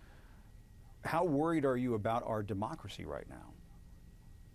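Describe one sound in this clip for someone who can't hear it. A man speaks calmly through a microphone, as if on a remote call.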